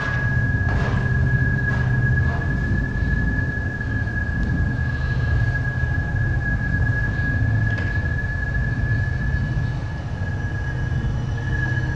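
A deep electronic drone rumbles steadily through loudspeakers.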